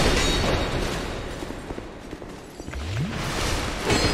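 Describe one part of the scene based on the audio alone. Footsteps clatter on a stone floor.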